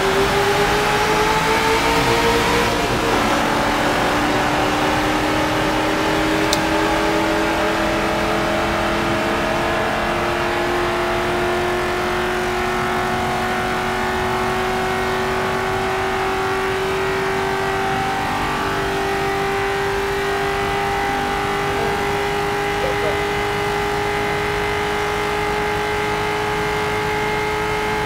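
A race car engine roars at high speed and climbs steadily in pitch.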